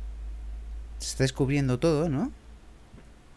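A young man speaks briefly and with animation, close to a headset microphone.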